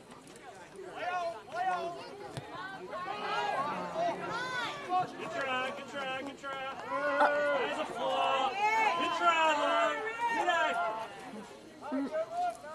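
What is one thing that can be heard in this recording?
A crowd of spectators cheers and shouts excitedly, growing louder.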